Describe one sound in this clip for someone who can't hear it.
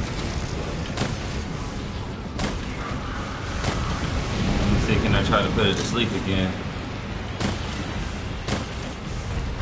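Sharp impacts thud and clang.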